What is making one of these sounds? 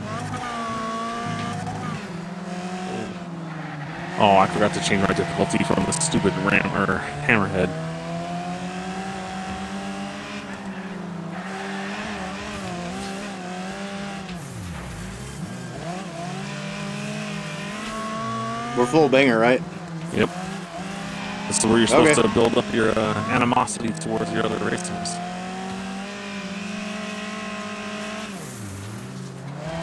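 A racing car engine drones and revs steadily.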